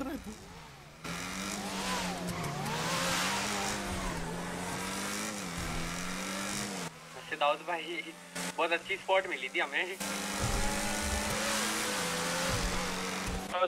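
A car engine drones and revs up and down.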